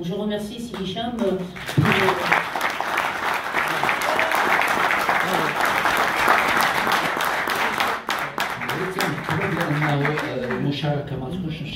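A middle-aged woman speaks calmly into a microphone, heard through a loudspeaker.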